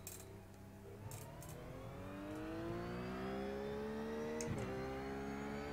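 A racing car engine revs up as the car accelerates.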